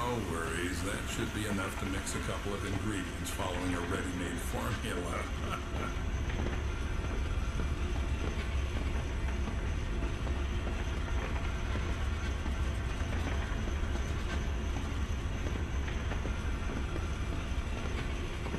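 A cart rumbles low and steadily as it is pushed along.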